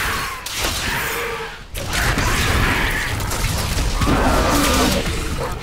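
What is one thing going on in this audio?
Fiery magic blasts roar and crackle in bursts.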